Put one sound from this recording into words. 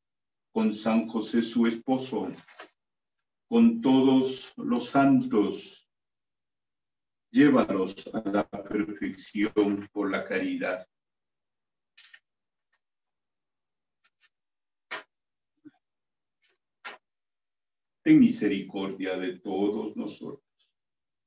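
A middle-aged man speaks calmly through an online call, in short phrases with pauses.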